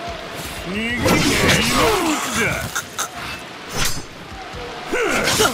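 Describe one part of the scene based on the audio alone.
Swords clash and ring with sharp metallic strikes.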